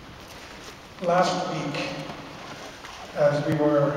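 A man chants in a loud, sustained voice in a large echoing hall.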